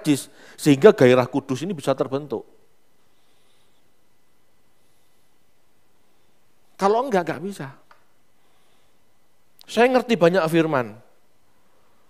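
A middle-aged man speaks with animation through a headset microphone, pausing between phrases.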